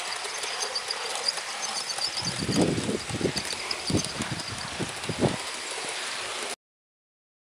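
A model train rumbles and clatters along its track.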